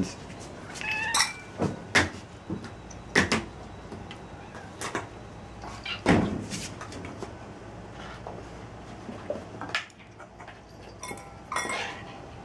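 Metal food bowls clink and knock on a hard floor.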